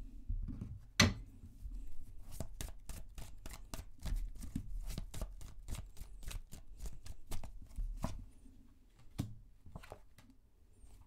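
Playing cards are shuffled with quick, crisp riffling clicks.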